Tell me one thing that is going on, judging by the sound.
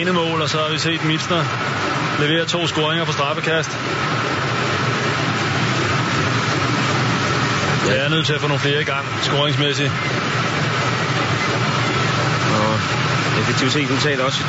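A large crowd murmurs and cheers steadily in a big echoing hall.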